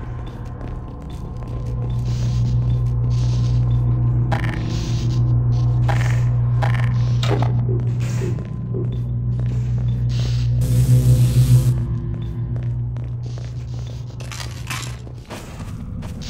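An electric force field hums loudly and crackles.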